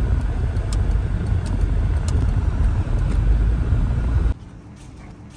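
A car engine rumbles steadily from inside a moving car.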